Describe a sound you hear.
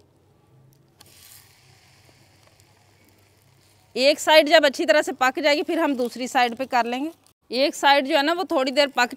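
Flatbread sizzles softly on a hot pan.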